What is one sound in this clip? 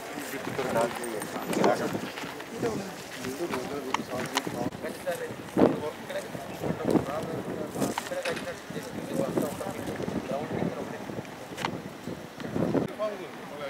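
A man speaks with animation outdoors, close by.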